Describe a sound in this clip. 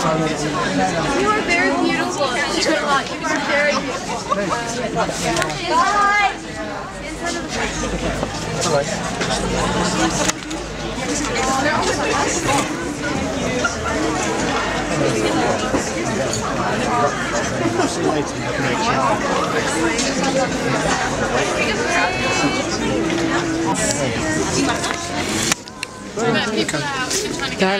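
A man talks quietly with people nearby.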